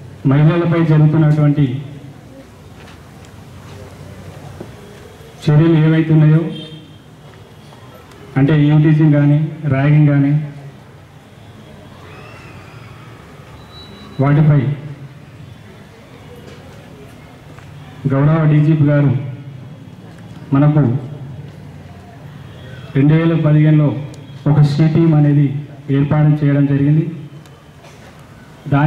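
A man speaks loudly through a microphone and loudspeaker in short bursts with pauses.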